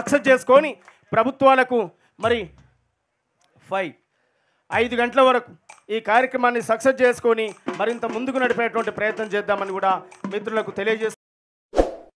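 A young man speaks forcefully into a microphone over a loudspeaker.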